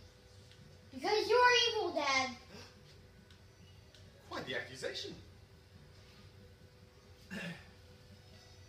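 A young boy shouts nearby.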